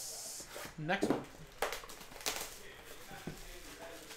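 Plastic wrap crinkles as it is torn off a box.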